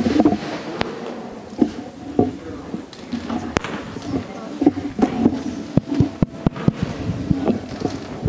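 Bare feet stamp on a wooden floor.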